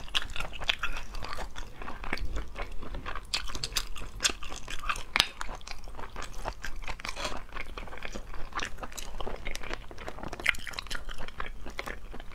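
Sticky shells crackle and squelch between fingers close to a microphone.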